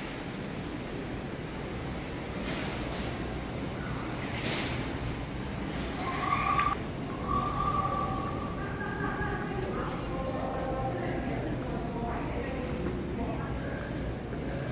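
A large echoing hall hums with distant crowd noise.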